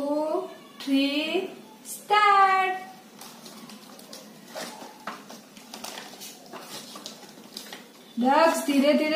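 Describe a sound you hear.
A young girl speaks in a bright, lively voice close by.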